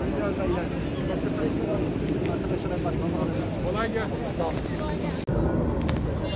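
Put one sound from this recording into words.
Several men talk at once outdoors, close by.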